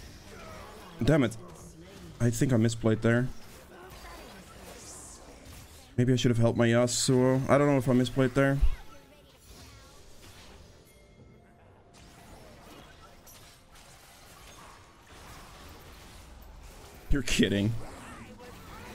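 A young man speaks with animation, close to a microphone, in short bursts.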